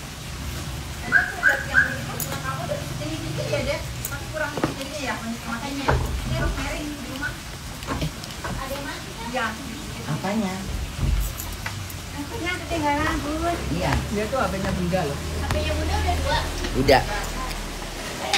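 A woman talks with animation close to a phone's microphone.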